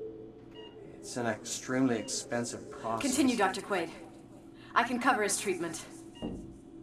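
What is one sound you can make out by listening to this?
A woman speaks calmly and firmly.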